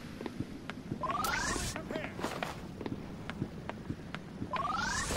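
Rising electronic whooshes sound from a game.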